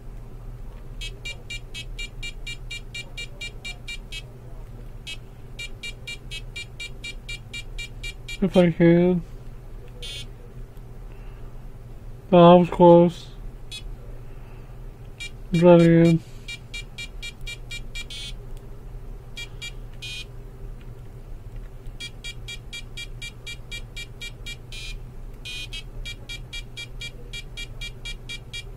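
A handheld LCD game's piezo speaker chirps in rapid beeps.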